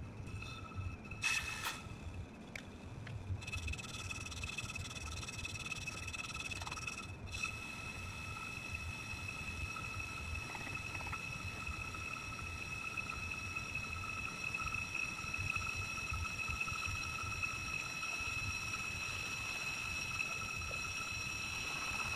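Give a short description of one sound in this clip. A brake lathe hums steadily as it turns a brake disc.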